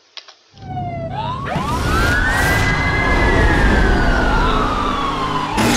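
A police siren wails and rises and falls.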